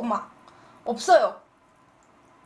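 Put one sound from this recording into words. A young woman speaks brightly and close into a microphone.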